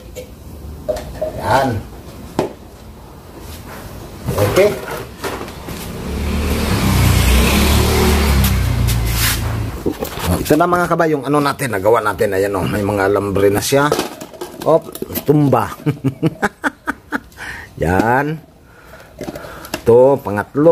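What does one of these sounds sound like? Plastic bottles clatter as they are handled.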